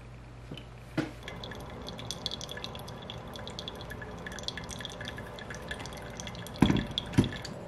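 Water trickles into a paper filter of coffee grounds.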